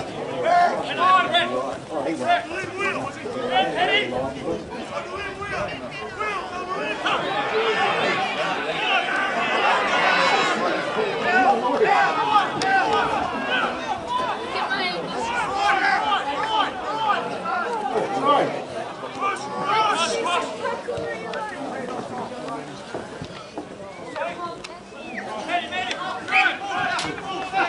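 A crowd of spectators cheers and shouts outdoors, swelling loudly for a while.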